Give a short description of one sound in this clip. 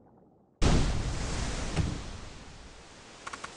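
Water splashes loudly, then fades.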